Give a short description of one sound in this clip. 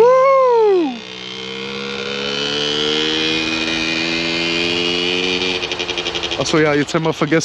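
A motorcycle rides away and fades into the distance.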